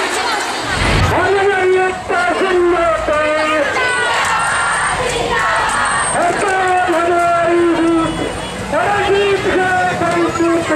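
A crowd of women chants slogans together loudly.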